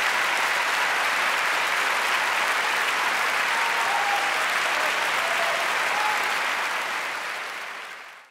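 A large audience applauds loudly in an echoing hall, fading out at the end.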